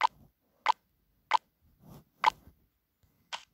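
Short game sound effects click and chime as menu choices are tapped.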